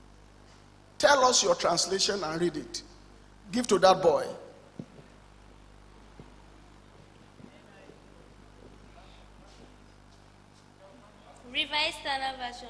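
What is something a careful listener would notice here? A middle-aged man speaks with animation into a microphone through a loudspeaker, pausing at length between phrases.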